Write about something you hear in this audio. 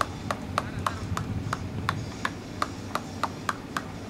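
A cricket bat knocks a ball.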